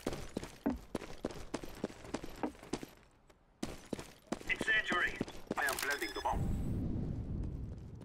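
A bomb keypad beeps as buttons are pressed.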